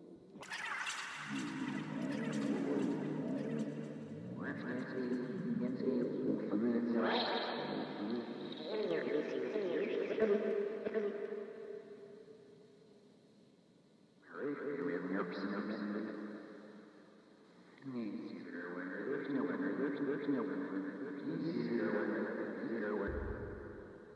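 A synthesizer plays layered electronic tones that swell and fade in waves.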